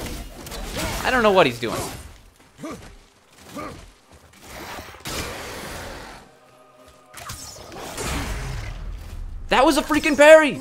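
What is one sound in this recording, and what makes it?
A monster lets out a rough, rising groan.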